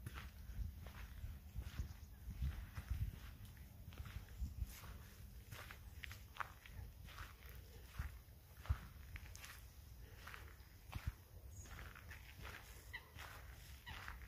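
Footsteps crunch on a dirt path at a steady walking pace.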